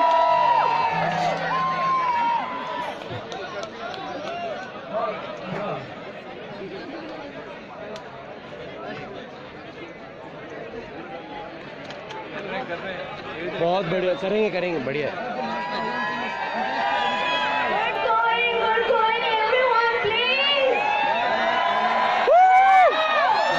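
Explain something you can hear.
A large crowd of men and women chatters and calls out loudly outdoors.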